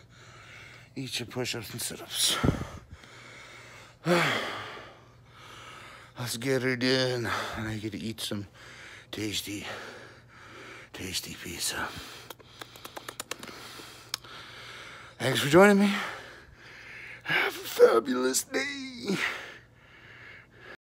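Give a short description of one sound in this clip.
A man speaks with animation close to a microphone, in bursts with pauses.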